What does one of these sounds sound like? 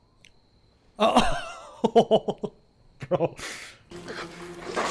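A man laughs loudly up close.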